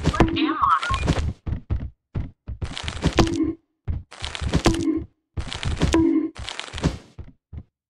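A shovel swings and thuds heavily against a body.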